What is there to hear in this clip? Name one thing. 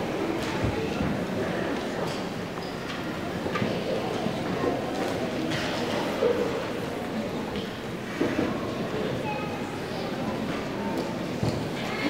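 A concert band plays together in a large echoing hall.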